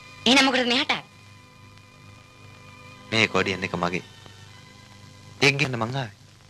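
An accordion plays sustained chords.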